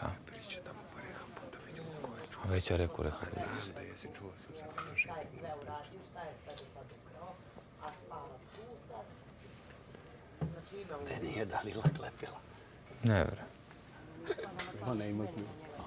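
Young men talk with each other nearby.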